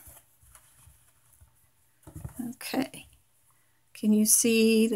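Hands softly rustle and rub a piece of crocheted fabric.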